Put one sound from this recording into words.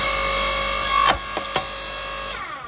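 A log cracks as it splits apart.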